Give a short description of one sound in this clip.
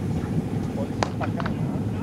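A cricket bat sharply strikes a ball.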